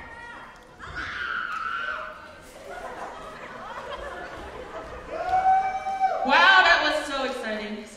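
Teenagers sing and call out through a microphone in a large echoing hall.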